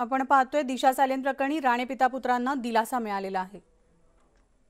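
A woman reads out the news clearly through a microphone.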